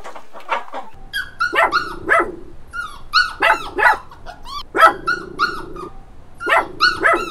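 A dog pants and whines.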